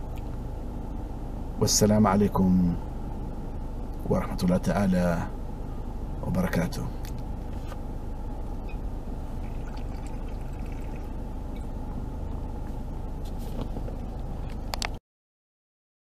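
A steady low hum of a car interior runs underneath.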